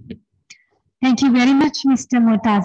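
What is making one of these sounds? A young woman speaks loudly and clearly through a microphone.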